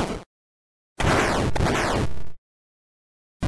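A game explosion bursts loudly.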